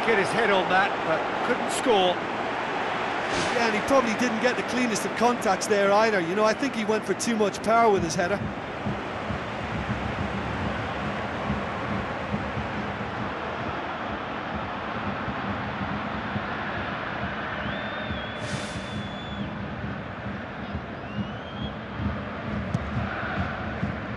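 A large crowd murmurs and roars steadily in a stadium.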